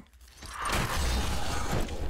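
Weapons clash and strike in a fight with creatures.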